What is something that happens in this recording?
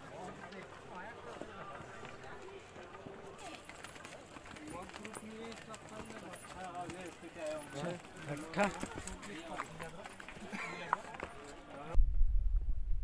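A crowd of people chatters nearby, outdoors.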